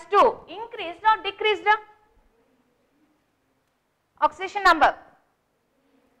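A woman speaks clearly and calmly, as if teaching.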